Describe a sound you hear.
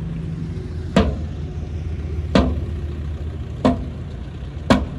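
A truck's tailgate bangs shut with loud metal clanks.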